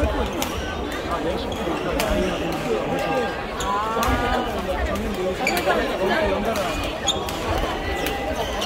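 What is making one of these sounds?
Shoes squeak on the wooden floor.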